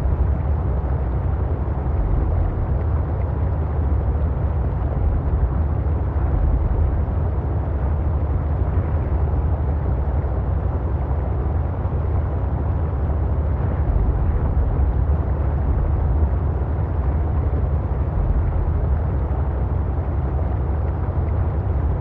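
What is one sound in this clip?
A small submarine's engine hums low and steady underwater.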